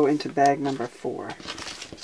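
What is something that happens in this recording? Paper pieces rustle and shuffle in hands.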